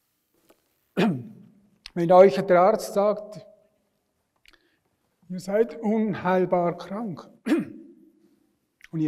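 An elderly man speaks slowly and deliberately through a microphone.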